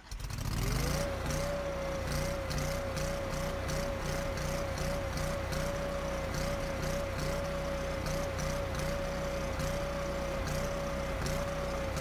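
An engine runs steadily at high speed with a droning whine.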